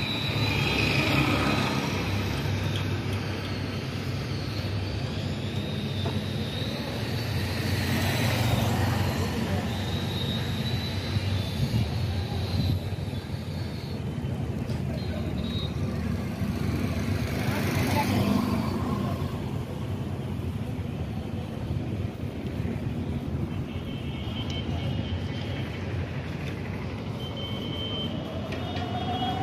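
A diesel engine idles with a steady low rumble close by.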